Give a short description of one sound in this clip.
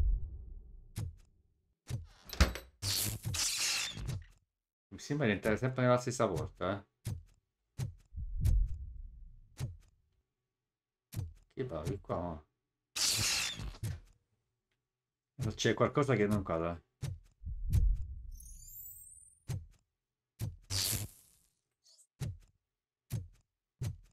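A young man speaks with animation into a close microphone.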